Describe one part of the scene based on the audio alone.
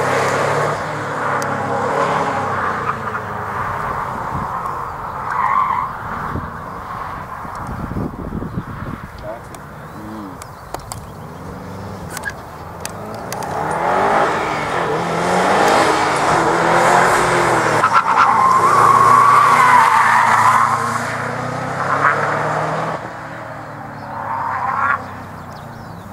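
A car engine revs hard and roars as the car speeds around a course.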